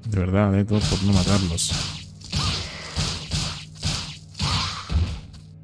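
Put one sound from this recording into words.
Swords slash and strike in quick, repeated blows.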